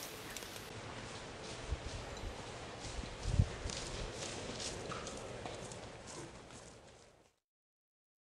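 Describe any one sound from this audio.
A horse's hooves thud on grass as it lopes closer.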